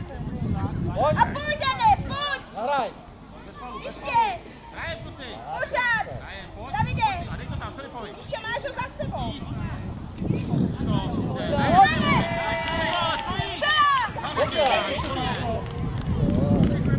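Children shout and call out excitedly across an open field.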